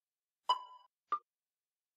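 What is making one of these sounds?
A bright electronic chime rings briefly.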